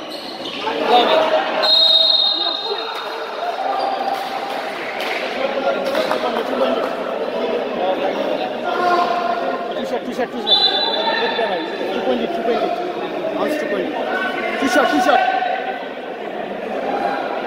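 A crowd of young spectators shouts and cheers.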